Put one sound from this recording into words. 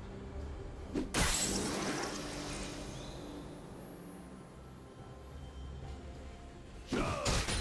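Video game spell effects whoosh and crackle in sudden bursts.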